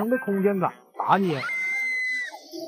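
A young woman exclaims excitedly nearby.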